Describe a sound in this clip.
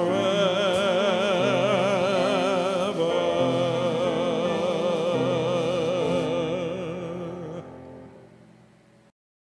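A piano plays along with a man singing.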